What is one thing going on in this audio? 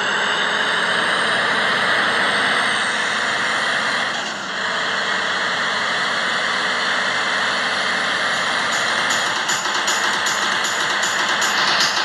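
A bus engine hums steadily as it drives along a road.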